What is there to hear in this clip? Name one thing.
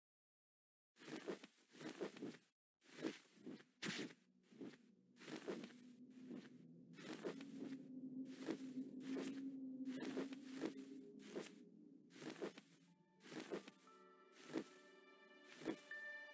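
Wings flap in quick, repeated beats.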